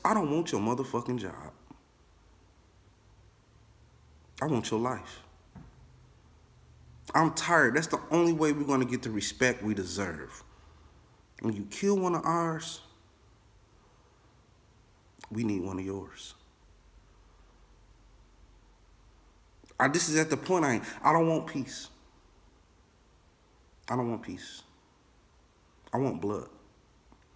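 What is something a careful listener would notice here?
A man speaks calmly close to a microphone, in short bursts with pauses.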